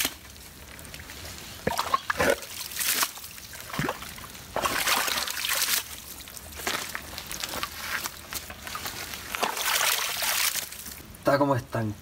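A shovel scrapes and squelches through wet mud.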